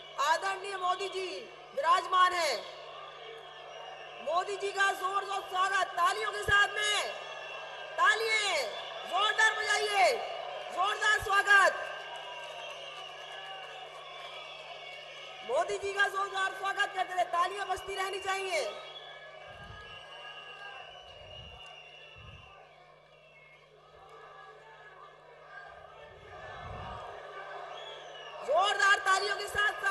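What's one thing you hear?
A large crowd chants slogans loudly in unison.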